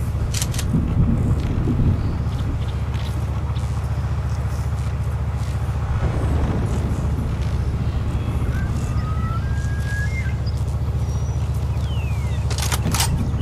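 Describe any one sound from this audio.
A large SUV engine idles with a low rumble.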